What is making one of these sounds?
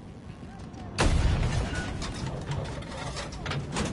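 A rocket explodes with a deep rumble.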